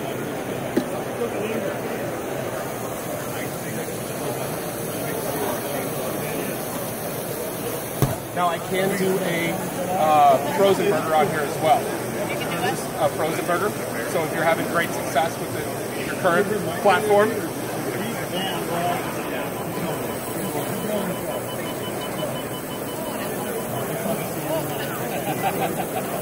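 A crowd murmurs steadily in a large hall.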